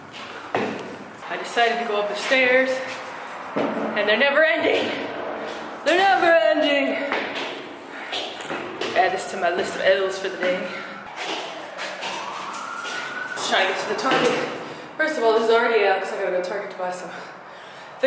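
A young woman talks with animation close to the microphone in an echoing space.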